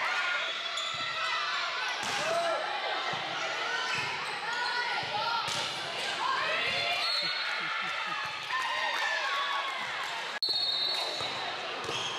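Young girls call out and chatter around the court.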